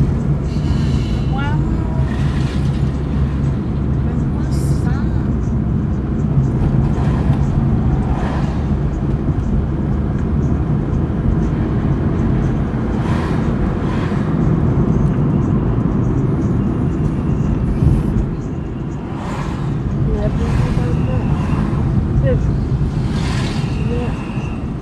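Passing cars swish by in the other direction.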